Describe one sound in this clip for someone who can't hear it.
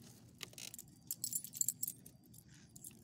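Metal tags on a dog's collar jingle close by.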